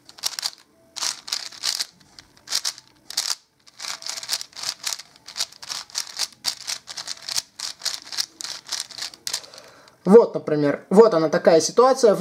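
Plastic puzzle cube pieces click and clatter in quick, rapid turns.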